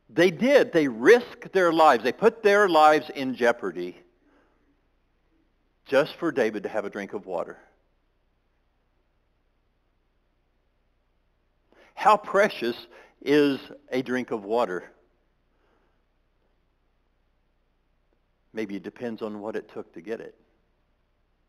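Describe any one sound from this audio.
A man speaks with animation through a microphone, pausing between phrases.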